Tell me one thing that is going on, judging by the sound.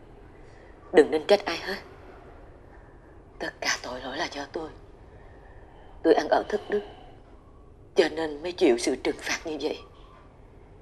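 A woman speaks in an upset, tearful voice nearby.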